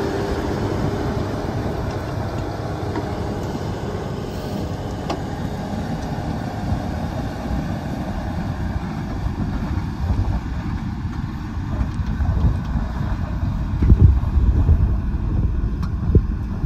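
A heavy tractor engine rumbles and roars steadily close by.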